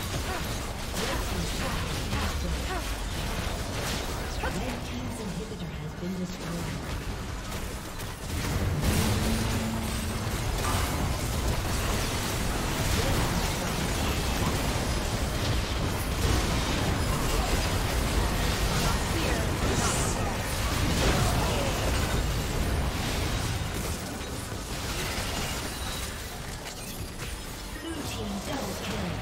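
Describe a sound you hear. Game spells and attacks crackle and boom in a busy battle.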